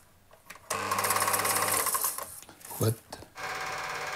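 A film projector whirs steadily.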